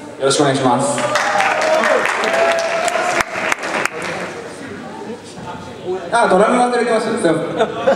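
A young man shouts into a microphone in an echoing hall.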